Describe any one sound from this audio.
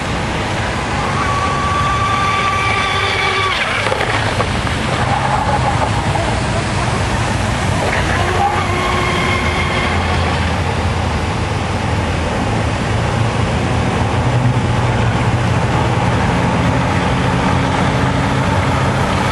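A model boat's motor whines as it speeds across water, rising and falling in pitch.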